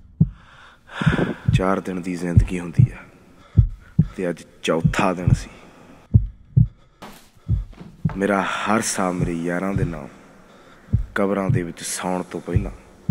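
A young man sings with feeling.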